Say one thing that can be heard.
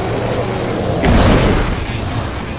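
A car thumps heavily over a bump.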